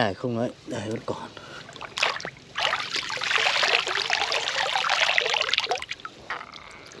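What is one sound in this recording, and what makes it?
Water splashes and sloshes in a shallow pond.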